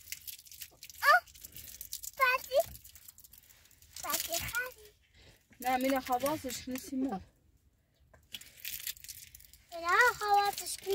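A child speaks in a high voice nearby.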